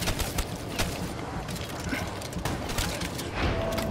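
Guns fire in short sharp bursts.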